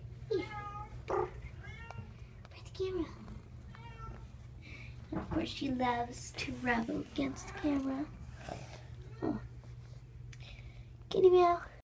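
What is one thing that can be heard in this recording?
A cat meows repeatedly, close by.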